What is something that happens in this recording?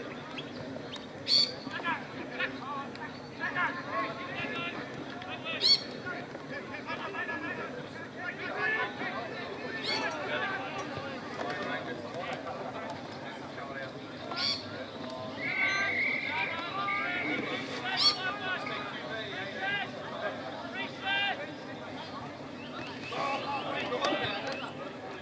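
Players and spectators shout and call out across an open field.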